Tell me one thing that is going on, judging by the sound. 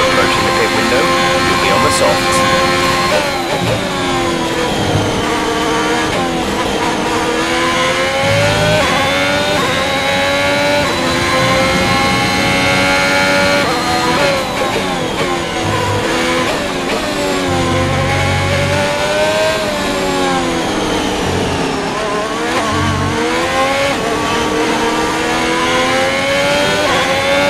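A racing car engine screams, rising and falling in pitch.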